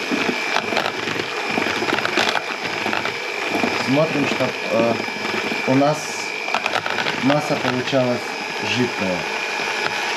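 Mixer beaters rattle and knock against a bowl.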